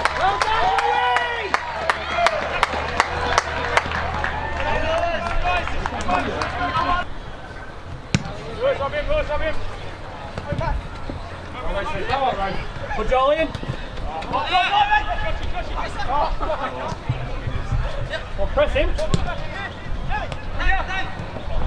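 Men shout and call to each other outdoors across an open field.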